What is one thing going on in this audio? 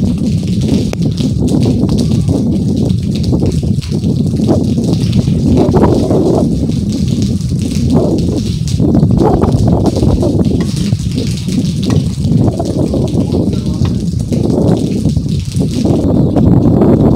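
Rain falls steadily on a metal roof.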